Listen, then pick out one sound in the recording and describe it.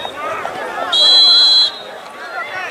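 A referee's whistle blows one long, steady blast.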